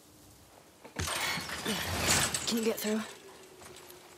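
A chain-link fence rattles and clanks.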